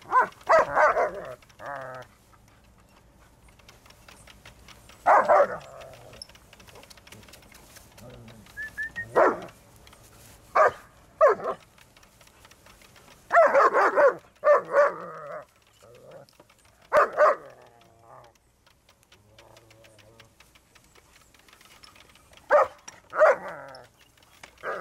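Dogs bark loudly in short bursts.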